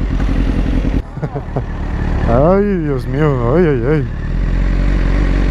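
A motorcycle engine revs as the bike rides off along the road.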